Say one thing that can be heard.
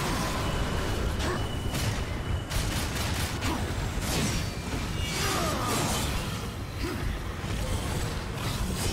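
A large beast roars and growls.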